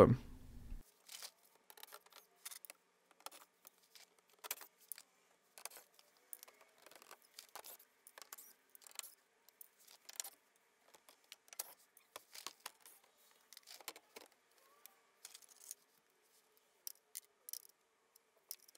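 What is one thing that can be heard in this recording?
Tools clink and tap against metal parts.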